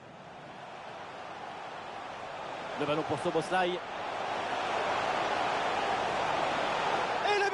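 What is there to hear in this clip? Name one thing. A large crowd roars and swells louder.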